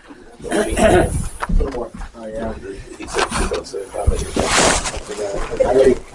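An elderly man speaks steadily through a microphone in a room with some echo.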